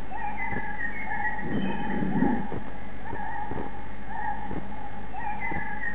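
A wooden catapult creaks and swings its arm with a whoosh.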